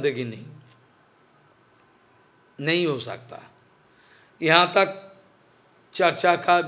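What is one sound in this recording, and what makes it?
An elderly man sings short phrases with pauses between them.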